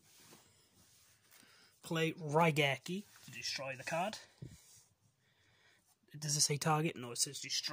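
A playing card slides and taps softly onto a cloth mat.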